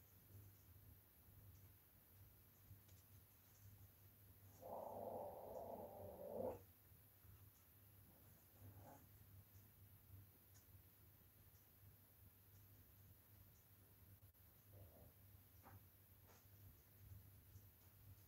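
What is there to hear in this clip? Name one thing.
A small paintbrush taps and dabs softly.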